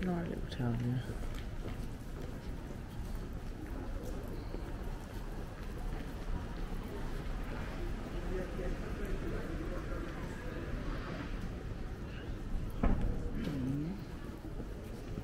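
Distant pedestrians murmur faintly along an open street outdoors.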